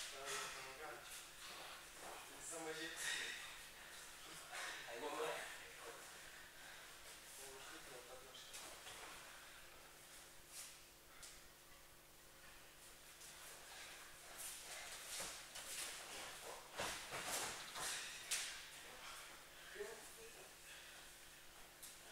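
Bare feet shuffle and slap on a padded mat.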